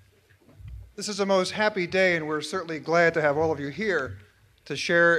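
An older man speaks calmly through a microphone and loudspeakers.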